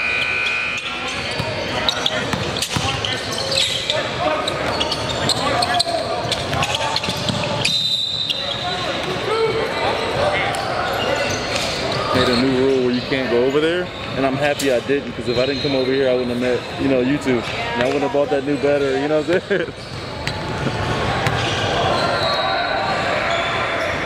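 A basketball bounces on a hard floor in a large echoing hall.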